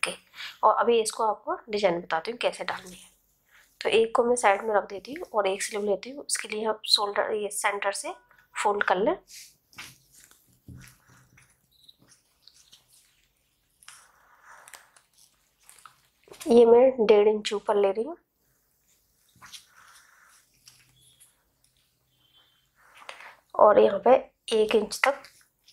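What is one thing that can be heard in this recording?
Fabric rustles softly as it is folded and smoothed by hand.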